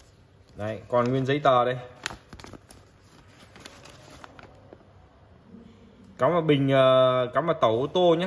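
Paper rustles as a leaflet is handled.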